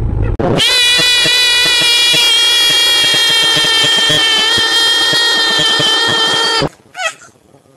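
A young boy sings loudly and close by, holding a long note.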